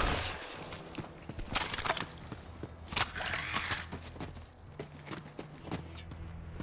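Footsteps crunch on sandy ground.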